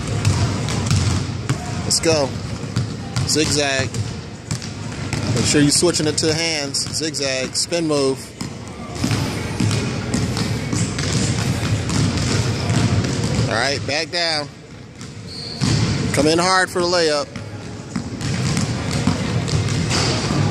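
A basketball bounces repeatedly on a wooden floor in a large echoing gym.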